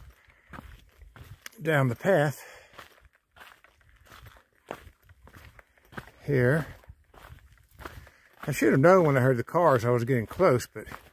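Footsteps crunch on dry leaves and dirt.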